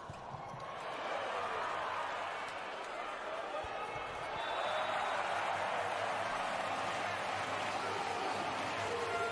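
A large indoor crowd cheers and roars in an echoing arena.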